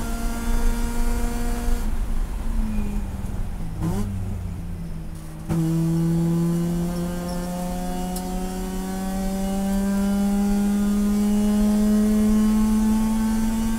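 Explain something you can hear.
A race car engine roars loudly from inside the cabin, dropping as the driver lifts off and then revving up steadily as the car accelerates.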